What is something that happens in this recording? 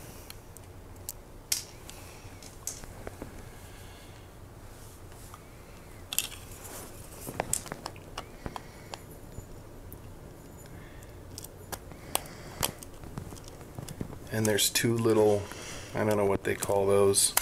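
Small plastic parts click and tap as they are handled.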